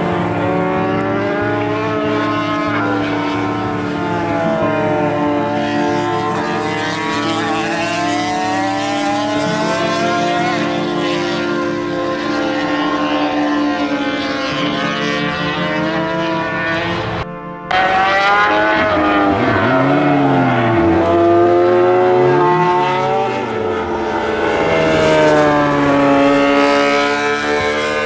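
A racing motorcycle engine screams at high revs, rising and falling as it shifts gears.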